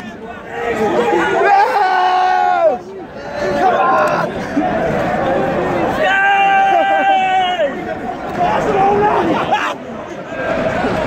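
A crowd of football supporters sings a chant close by.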